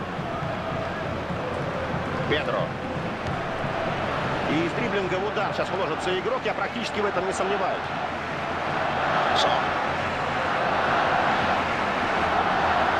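A large crowd cheers and murmurs steadily, swelling louder toward the end.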